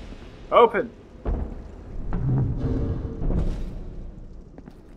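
Large heavy doors creak and swing open.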